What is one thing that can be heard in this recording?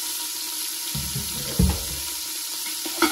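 Vegetables drop into a metal pot with a soft thud.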